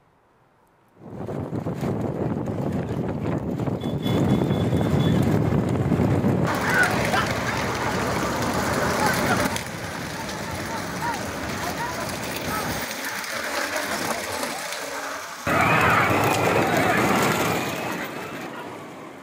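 Bullock carts rattle and rumble along a paved road.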